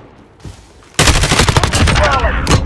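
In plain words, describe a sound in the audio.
Rapid gunfire rattles loudly and close.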